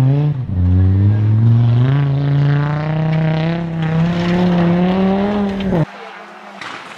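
A rally car engine revs hard and rises in pitch as the car approaches.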